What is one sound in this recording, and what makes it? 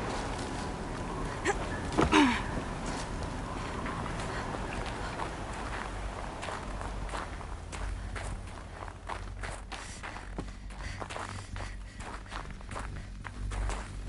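Footsteps crunch on snow and stone.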